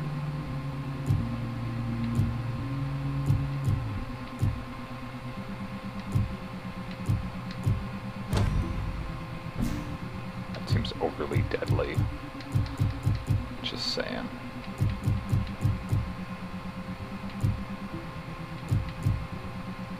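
Menu selection clicks and blips tick as a cursor moves between options.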